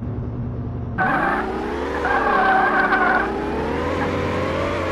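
A car engine revs up as a vehicle pulls away.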